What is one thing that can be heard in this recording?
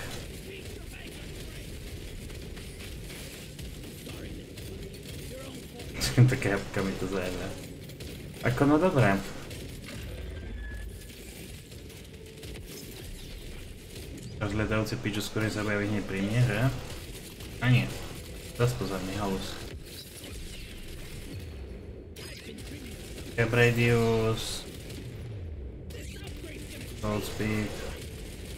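Computer keys click and clatter under quick typing.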